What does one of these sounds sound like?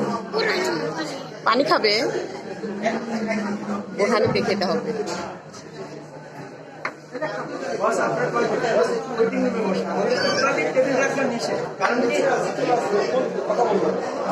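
Adults chat casually close by.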